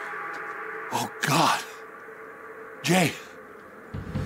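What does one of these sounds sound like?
A man speaks in a low, shaken voice.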